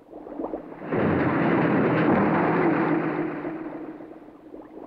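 Bubbles rush and hiss out of a submarine's exhaust underwater.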